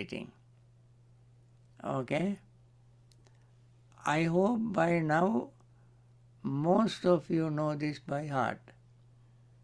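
A man speaks calmly, in short phrases, through an online call.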